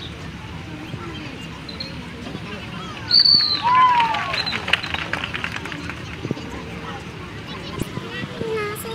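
A large outdoor crowd murmurs and chatters nearby.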